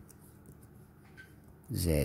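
Laptop keys click softly under a finger.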